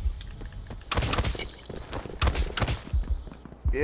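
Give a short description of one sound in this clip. Gunshots crack in short rapid bursts.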